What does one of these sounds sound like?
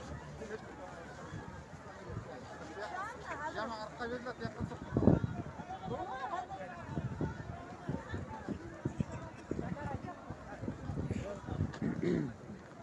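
A large crowd murmurs and talks outdoors.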